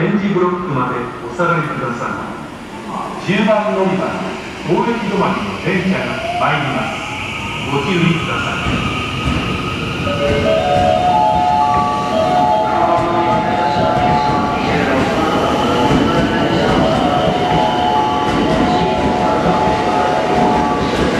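An electric train rolls slowly into a station with a low rumble.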